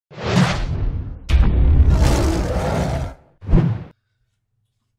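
A gorilla roars loudly and fiercely.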